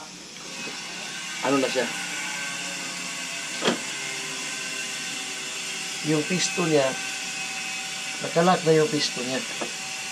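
A screwdriver scrapes and clicks on metal parts.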